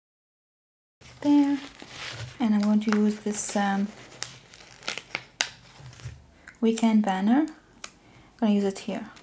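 Paper sticker sheets rustle and crinkle as they are handled.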